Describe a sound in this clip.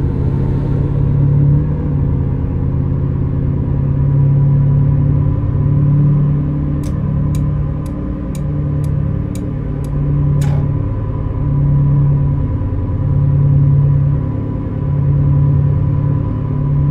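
Tyres roll on a smooth road.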